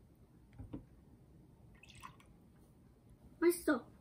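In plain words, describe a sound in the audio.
Juice pours into a glass.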